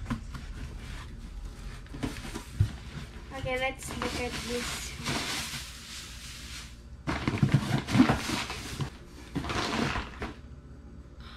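Tissue paper rustles and crinkles as it is torn away.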